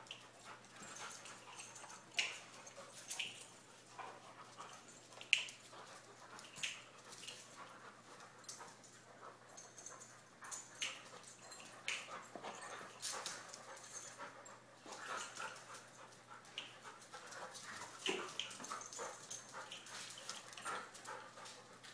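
Two dogs scuffle and play-fight close by.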